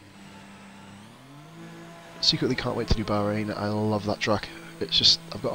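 A racing car engine revs up and pulls away.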